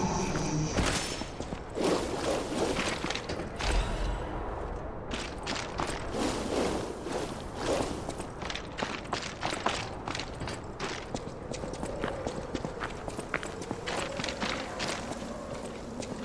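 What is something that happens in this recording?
Footsteps crunch and clatter over heaps of loose metal scraps and bones.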